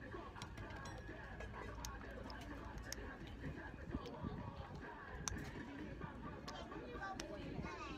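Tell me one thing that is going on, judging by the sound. Small clicks sound as fingers pick at a shell.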